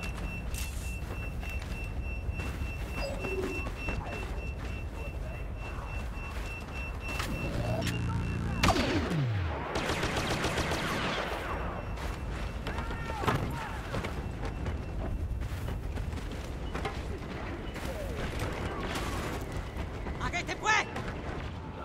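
Footsteps run quickly over sand and metal.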